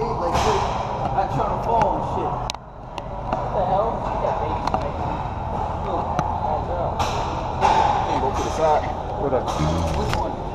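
A man talks with animation close by, in an echoing room.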